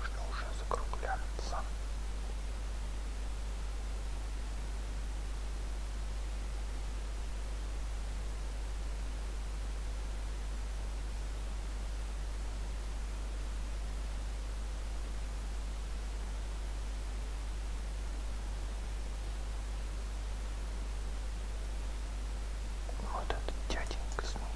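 A young man speaks briefly and calmly into a close microphone.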